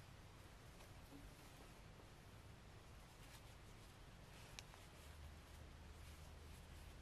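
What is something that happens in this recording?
Yarn rustles as it is pulled through stitches.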